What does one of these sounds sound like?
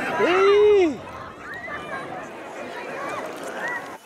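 Small waves lap and splash nearby.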